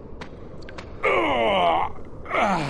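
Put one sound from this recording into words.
A monster lets out a loud bellowing roar.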